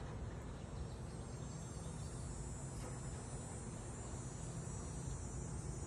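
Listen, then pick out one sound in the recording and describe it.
A bird flutters its wings as it hops onto a cage.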